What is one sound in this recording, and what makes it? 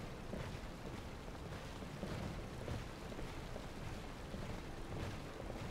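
Armoured footsteps thud on stone in an echoing hall.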